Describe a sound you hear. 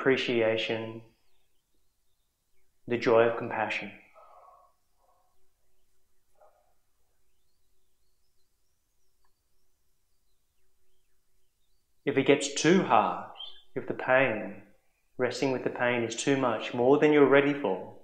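A man speaks calmly and slowly, with long pauses.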